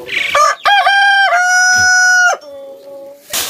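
A rooster crows loudly close by.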